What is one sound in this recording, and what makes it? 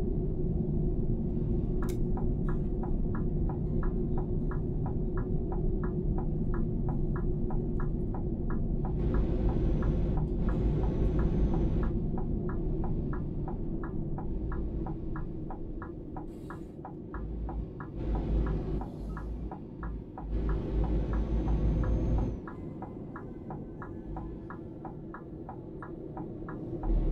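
Tyres roll over the road with a steady hiss.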